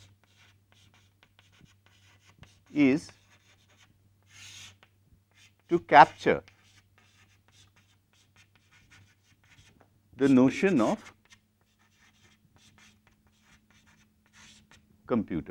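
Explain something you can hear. Chalk taps and scrapes on a blackboard.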